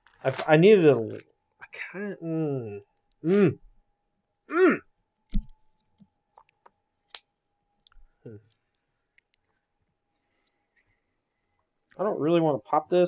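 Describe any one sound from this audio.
Playing cards tap and slide softly on a table.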